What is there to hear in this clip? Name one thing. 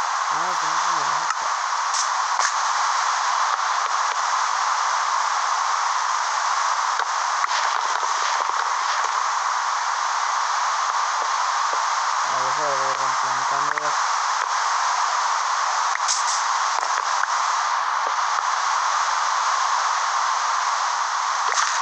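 Rain falls steadily with a constant hiss.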